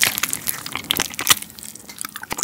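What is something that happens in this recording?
A young man bites into crunchy fried chicken close to a microphone.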